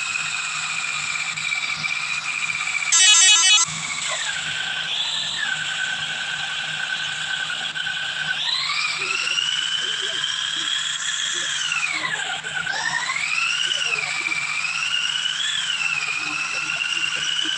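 A bus engine hums and revs up and down as the bus drives.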